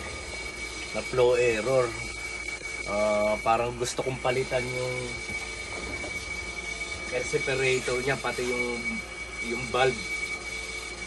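An adult man talks calmly close to the microphone.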